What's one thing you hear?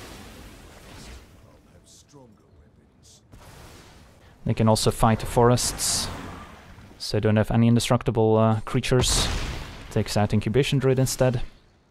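A magical whoosh and shimmer play.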